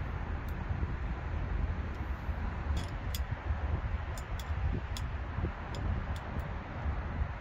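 A ratchet wrench clicks in short bursts close by.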